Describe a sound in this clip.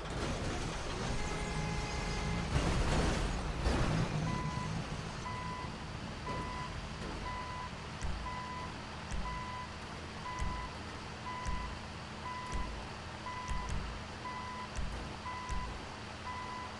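A vehicle engine rumbles as it drives over rough ground.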